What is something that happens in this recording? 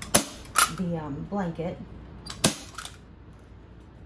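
A staple gun snaps sharply several times.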